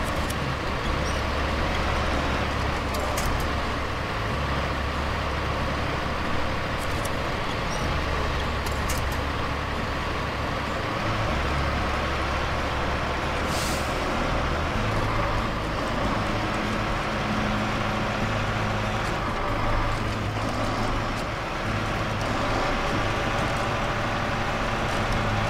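Snow crunches under heavy tyres.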